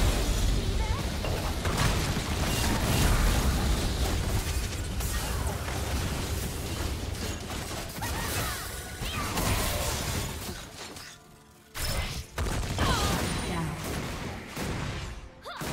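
Spell effects crackle, whoosh and boom in a fast game fight.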